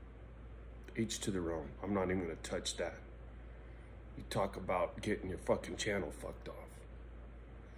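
A middle-aged man speaks calmly and closely into a microphone, with pauses.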